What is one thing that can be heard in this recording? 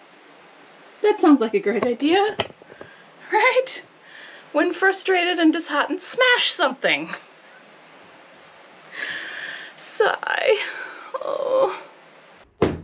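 A woman talks cheerfully and close by.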